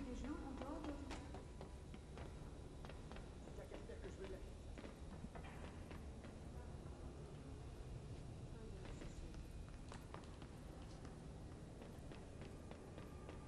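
Footsteps clang on metal stairs and grating.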